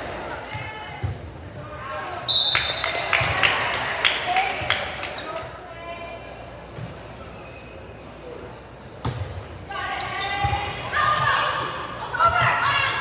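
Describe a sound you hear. Several young women call out and cheer in a large echoing gym.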